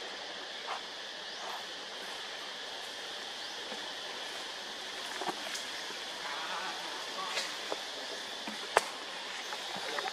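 A baby monkey suckles with soft wet smacking sounds.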